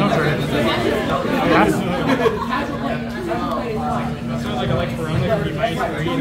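Playing cards are shuffled by hand.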